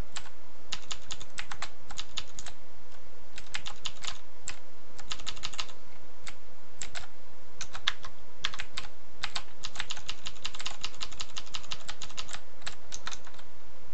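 Footsteps tap in quick bursts as a game character walks.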